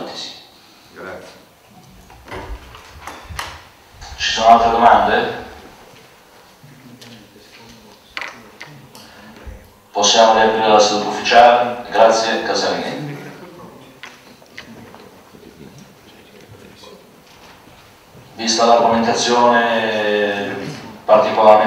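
A man speaks calmly through a microphone in an echoing hall, with long pauses.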